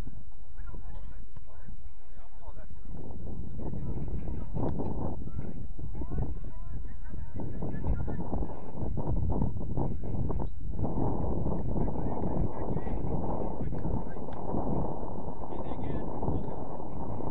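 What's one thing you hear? Young players shout to each other far off on an open field.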